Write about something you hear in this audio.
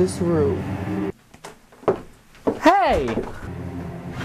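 A young woman speaks playfully close by.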